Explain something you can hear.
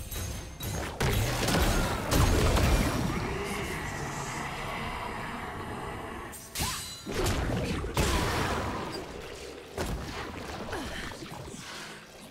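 Game spell effects burst and crackle with sudden blasts during a fight.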